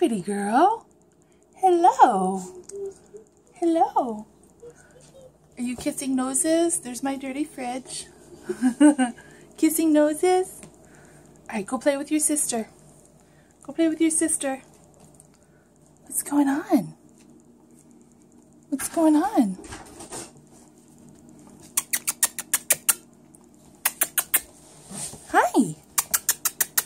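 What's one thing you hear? A puppy whimpers in short, high, rising cries.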